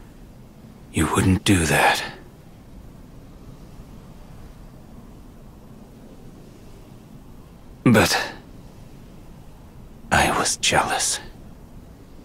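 A man speaks softly and sadly, close by.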